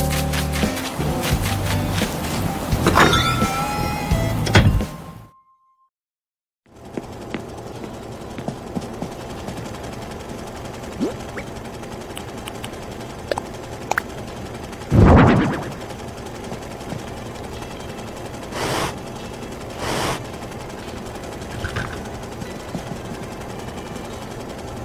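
Light, cheerful game music plays.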